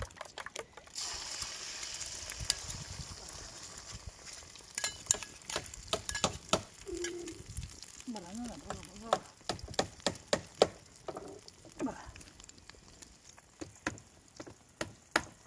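Eggs sizzle as they fry in hot oil in a pan.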